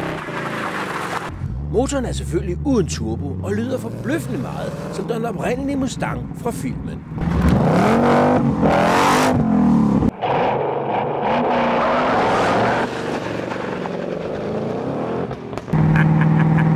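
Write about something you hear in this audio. A car engine rumbles and revs loudly.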